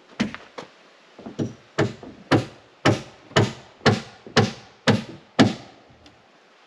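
A hammer strikes wood in quick, steady blows.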